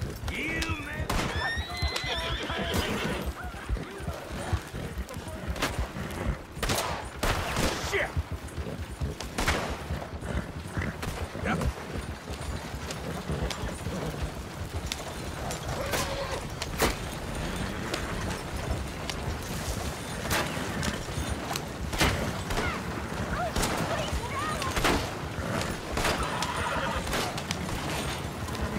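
Horse hooves clop steadily on a dirt track.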